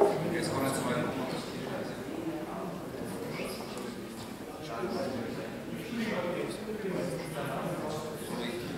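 Several adults chat casually in a large echoing hall.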